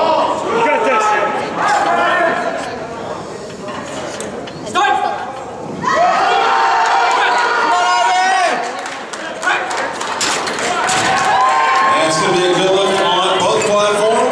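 A crowd of young people shouts encouragement loudly in a large echoing hall.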